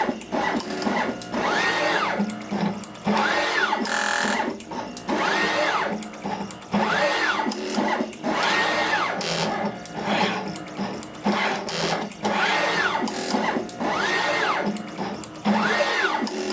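A machine's motors whir with a rising and falling pitch, over and over.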